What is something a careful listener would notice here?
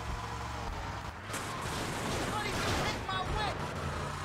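A car crashes with a loud crunch.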